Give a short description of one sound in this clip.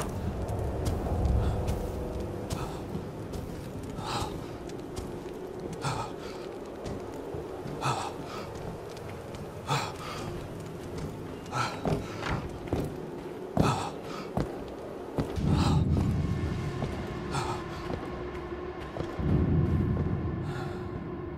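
Slow footsteps thud on a wooden floor.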